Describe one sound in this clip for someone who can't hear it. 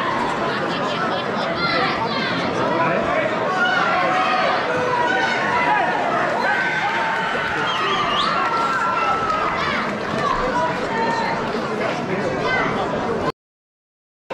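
A crowd chatters and murmurs in a large room.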